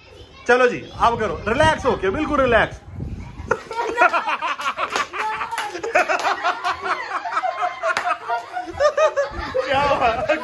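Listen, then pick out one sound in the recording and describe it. Children shout and laugh excitedly nearby.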